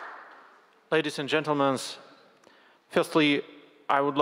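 A man speaks calmly into a microphone, heard over loudspeakers in a large hall.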